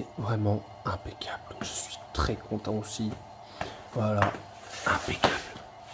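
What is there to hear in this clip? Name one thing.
A cardboard box scrapes and taps on a wooden floor.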